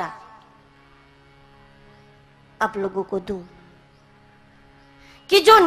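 A young woman speaks with feeling through a microphone and loudspeakers, in short phrases.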